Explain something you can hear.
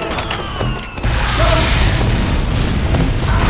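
A video game flamethrower roars.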